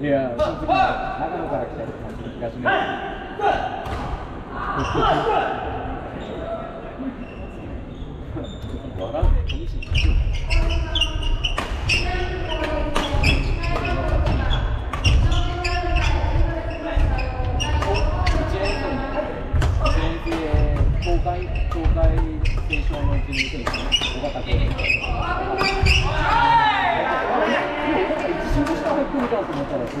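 Badminton rackets sharply strike a shuttlecock again and again in a large echoing hall.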